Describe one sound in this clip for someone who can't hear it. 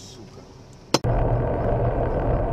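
A car engine rumbles steadily with road noise.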